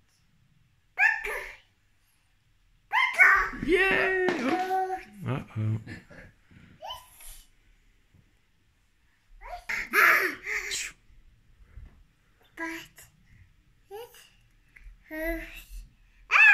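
A toddler girl squeals and babbles close by.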